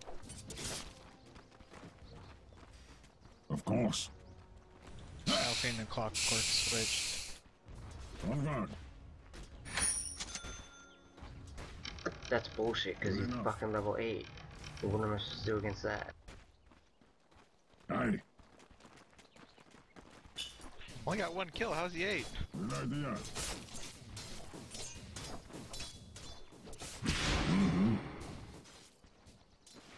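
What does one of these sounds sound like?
Game sound effects of magic blasts and clashing weapons ring out in bursts.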